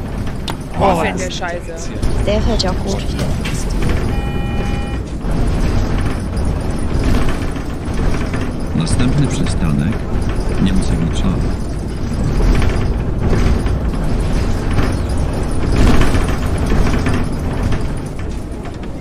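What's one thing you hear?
A bus engine rumbles steadily while driving over a road.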